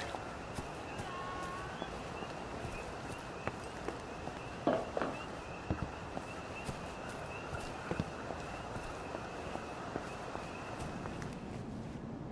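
Footsteps tread over grass, gravel and wooden boards.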